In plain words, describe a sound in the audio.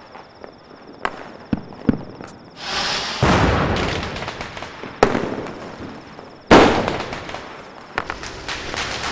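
Firecrackers burst with loud bangs.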